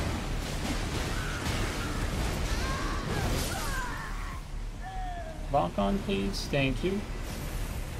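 Water splashes as a fighter moves through it.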